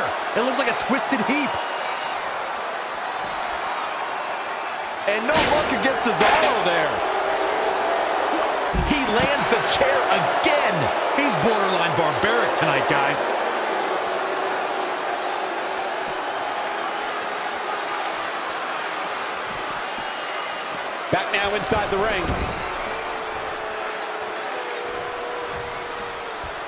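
A crowd cheers and roars throughout.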